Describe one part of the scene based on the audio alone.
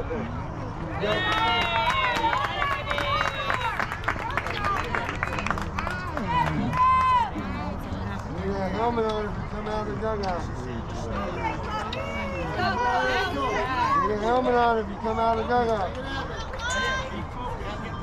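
Players and spectators shout and cheer outdoors.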